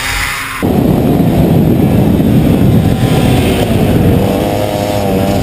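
A go-kart engine roars loudly up close.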